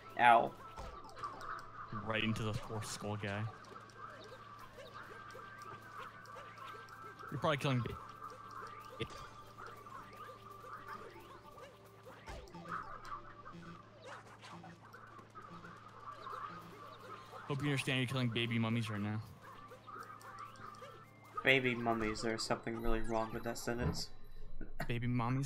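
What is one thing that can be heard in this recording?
Soft electronic game music plays steadily.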